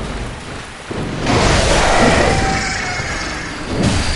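A blade swishes and strikes in a fight.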